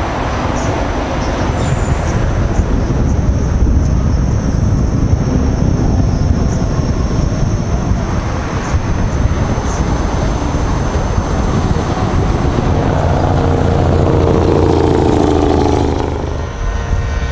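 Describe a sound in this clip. Tyres hum and crunch along rough asphalt.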